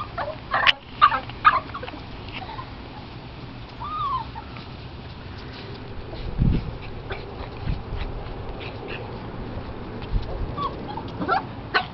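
Paws scuffle over dry grass and leaves.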